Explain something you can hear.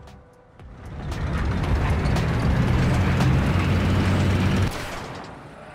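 A tank engine rumbles and clanks.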